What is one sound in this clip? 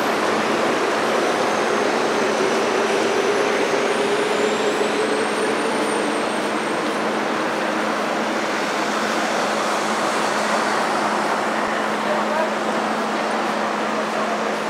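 A crowd of people murmurs nearby.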